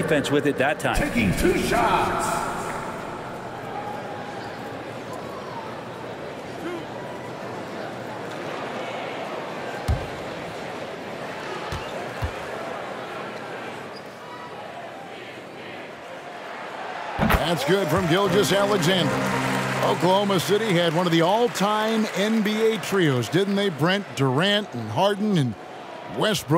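A large arena crowd murmurs steadily.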